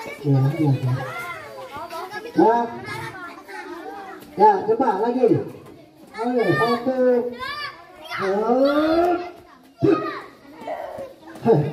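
Young children shout and chant together.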